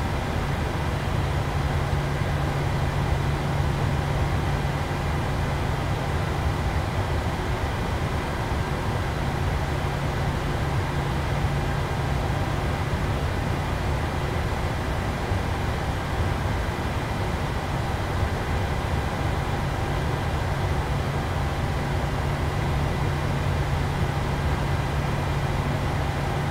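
Jet engines hum steadily at idle as an airliner taxis.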